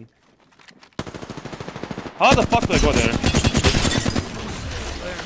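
Rapid automatic gunfire rattles in quick bursts.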